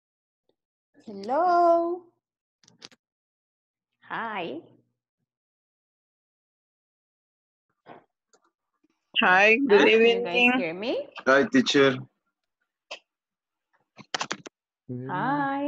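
A young woman speaks over an online call, in short bursts.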